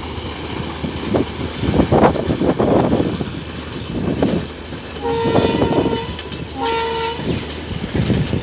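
A train rumbles along the tracks in the distance.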